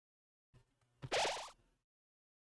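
A short, sharp chime rings out from a video game.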